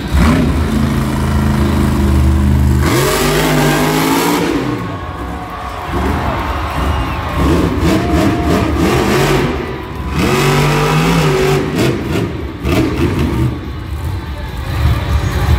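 A monster truck engine roars and revs in a large indoor arena.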